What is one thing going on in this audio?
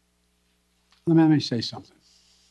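An elderly man speaks briefly into a microphone.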